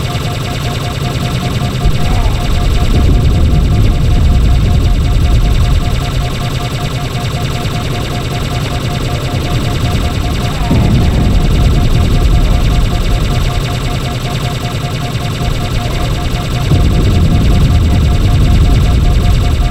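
A plasma weapon fires with rapid crackling bursts.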